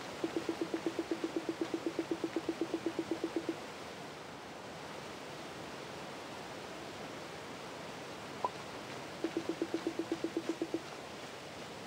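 A game plays a quick run of soft, even blips.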